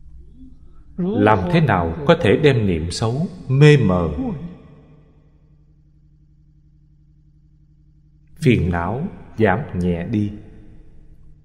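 An elderly man speaks calmly and warmly into a close microphone, with pauses.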